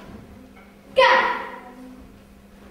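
A boy gives a sharp, loud shout in a hall with some echo.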